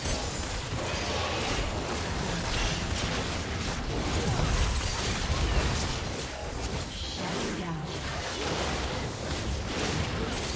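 Fantasy battle sound effects clash and burst rapidly.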